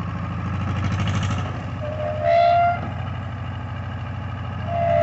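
A mower whirs and rattles through dense vegetation.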